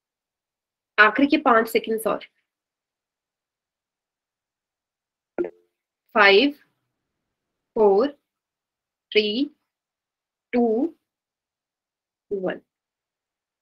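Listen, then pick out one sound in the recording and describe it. A young woman speaks in short phrases through a microphone on an online call, pausing between them.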